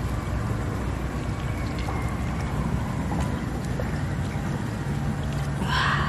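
A knife scrapes and squelches inside a wet mussel shell.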